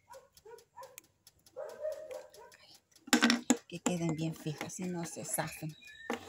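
Plastic pieces tap softly on a wooden board.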